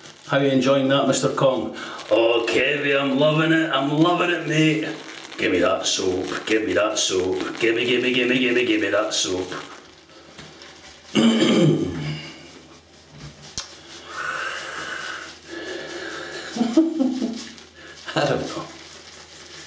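A middle-aged man talks calmly and close to a microphone.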